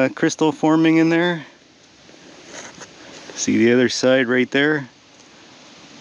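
Stones scrape and knock together as a rock is pulled from loose soil.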